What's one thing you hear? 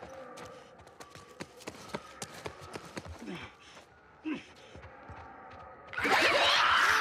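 Footsteps scuff across a hard floor.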